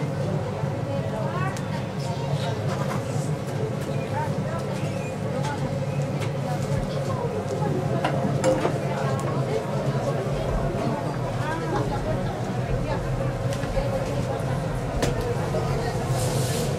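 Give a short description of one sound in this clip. A wooden paddle scrapes and knocks against a large pot while stirring.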